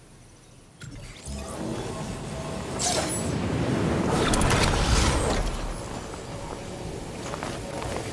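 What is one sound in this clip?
Wind rushes past during a glide through the air.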